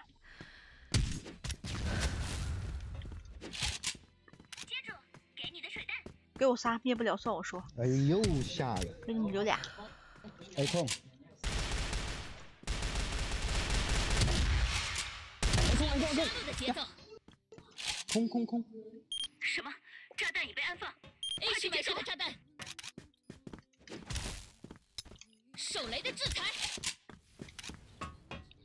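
Sniper gunshots crack sharply.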